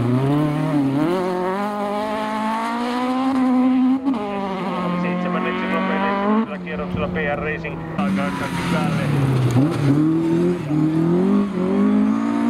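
Gravel sprays and crunches under spinning tyres.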